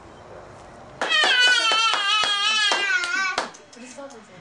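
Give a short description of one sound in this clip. A toddler squeals with delight close by.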